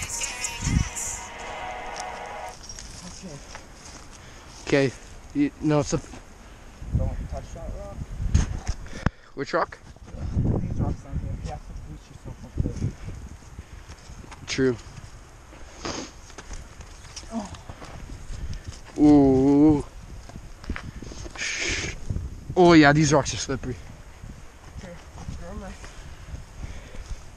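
Shoes scuff and scrape on loose rock and dry grass, close by.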